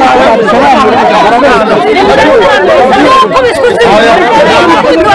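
A crowd of women talk and shout over one another close by, outdoors.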